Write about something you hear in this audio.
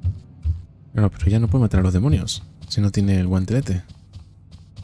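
A young man talks animatedly close to a microphone.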